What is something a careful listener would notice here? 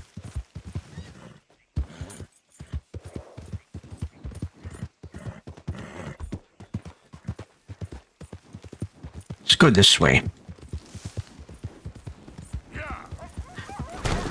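Horse hooves thud rapidly on the ground at a gallop.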